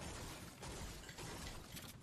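A pickaxe strikes with sharp metallic hits.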